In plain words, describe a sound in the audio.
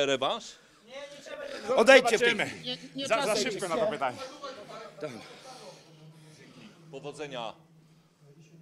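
A man speaks breathlessly and excitedly into a microphone up close.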